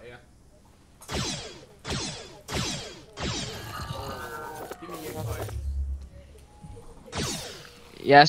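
A ray gun fires in quick zapping bursts.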